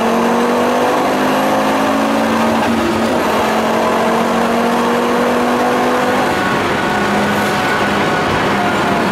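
Wind and tyres rush loudly against the car.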